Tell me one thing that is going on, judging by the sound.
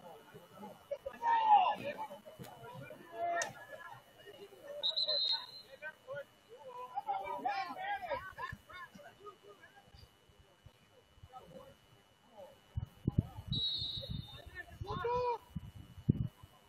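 Young players shout across an open outdoor field.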